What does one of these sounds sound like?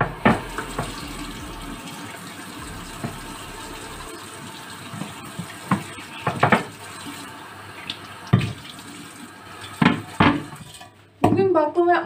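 Water runs steadily from a tap into a sink.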